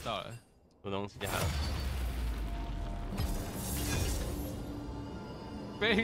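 A game's match-found alert plays a bright chiming tune.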